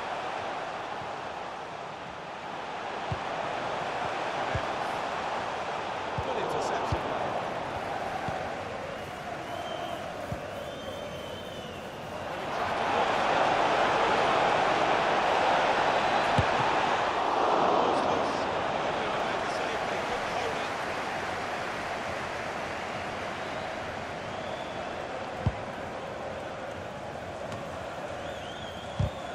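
A stadium crowd roars steadily, swelling louder for a while.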